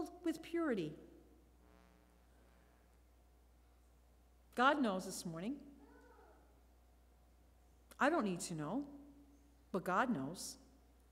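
A woman speaks calmly into a microphone in short phrases.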